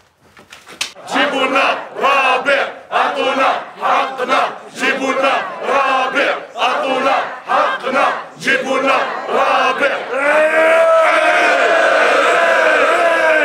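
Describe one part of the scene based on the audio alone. A crowd of men chants and shouts loudly in unison.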